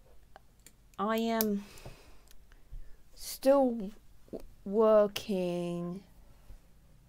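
A young woman speaks in short bursts close to a headset microphone.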